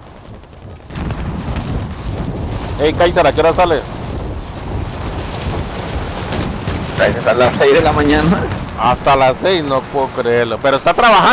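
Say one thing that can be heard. Wind rushes past loudly during a fall through the air.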